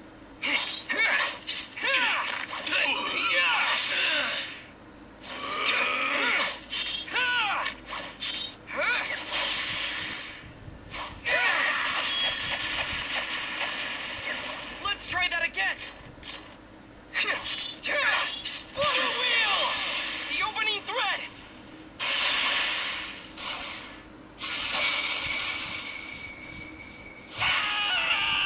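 Sword slashes and hit effects from a fighting game play through a small phone speaker.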